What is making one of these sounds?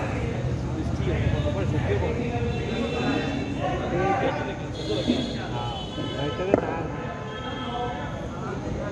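Men talk and call out to each other outdoors at a distance.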